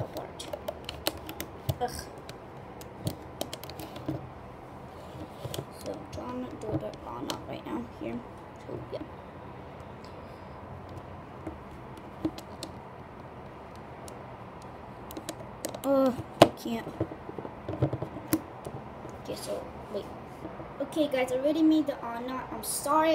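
Plastic pegs and rubber bands click and tap softly as a hook works them.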